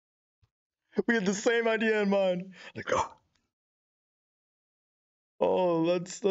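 A man sings in a dark, dramatic voice.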